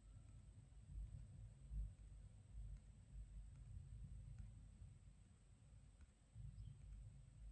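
A fingertip taps lightly on a phone's touchscreen.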